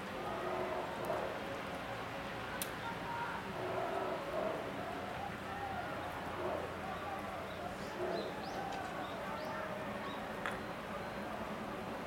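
Rain patters steadily on umbrellas.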